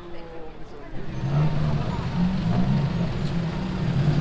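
Vehicle engines rumble and idle in busy street traffic.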